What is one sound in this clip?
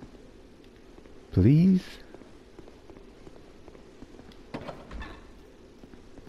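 Footsteps clatter quickly on stone steps.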